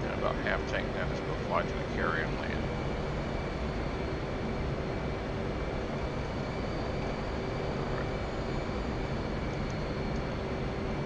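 A jet engine roars steadily inside a cockpit.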